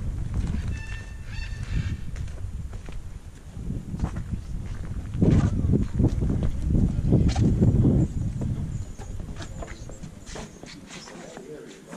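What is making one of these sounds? Footsteps tap on a wooden boardwalk.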